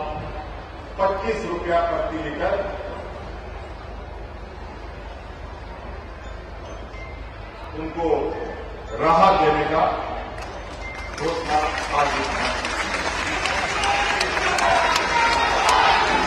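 A man speaks forcefully into a microphone, his voice echoing through loudspeakers.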